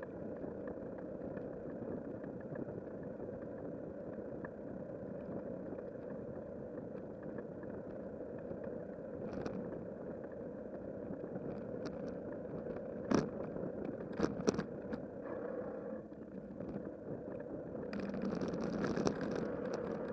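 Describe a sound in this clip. Wind rushes steadily past while riding outdoors.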